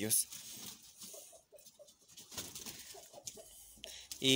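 Hens cluck softly.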